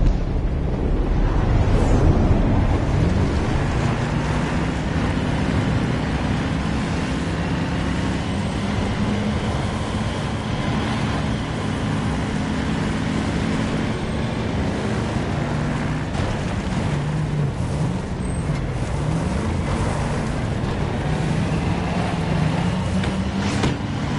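Tank tracks clatter and grind over a dirt road.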